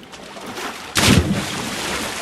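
A body splashes loudly into water.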